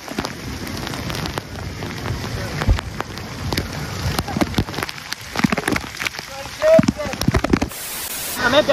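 Water splashes and sprays close by.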